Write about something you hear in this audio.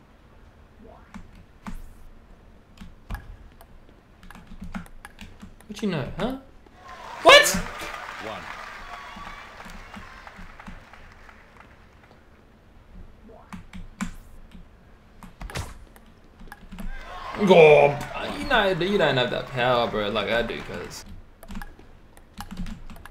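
A table tennis ball clicks sharply against paddles and the table.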